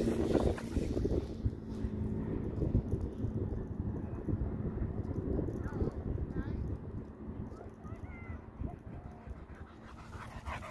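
A dog runs across grass.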